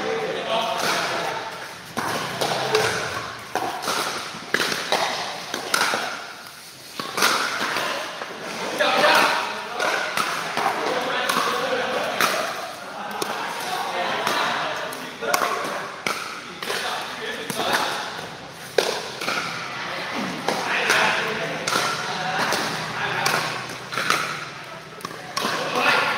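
Paddles knock a ball back and forth in sharp pops.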